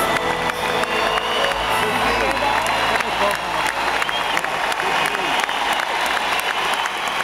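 A band plays guitars live on stage, heard from far back in a large echoing hall.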